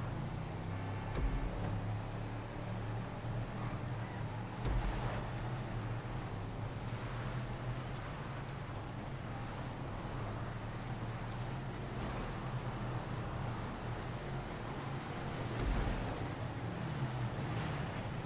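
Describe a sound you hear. A truck engine roars steadily.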